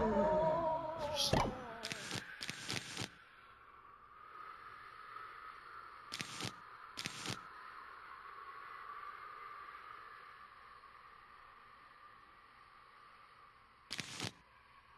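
Short clicks sound as game menu items are picked.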